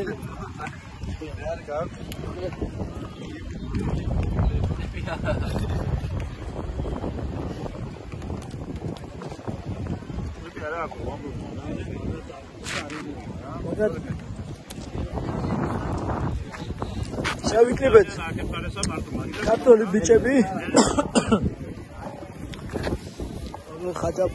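Young men talk and laugh together close by, outdoors.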